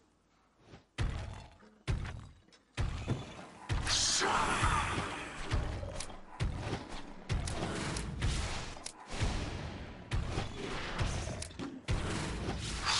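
Weapons strike with repeated short thuds.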